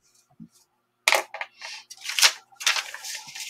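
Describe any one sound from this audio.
Paper crinkles and rustles as hands handle it.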